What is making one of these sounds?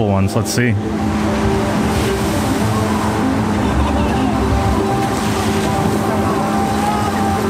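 A log boat splashes down into the water with a loud rushing spray.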